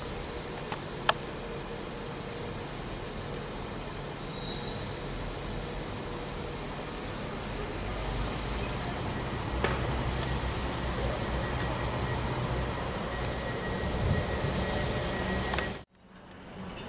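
Two trains rumble as they pull slowly away.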